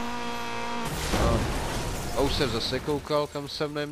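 A car crashes with a loud metallic smash.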